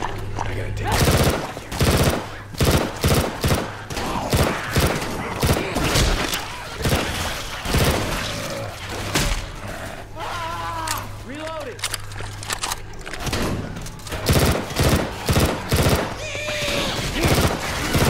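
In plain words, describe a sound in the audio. A rifle fires in quick bursts of shots.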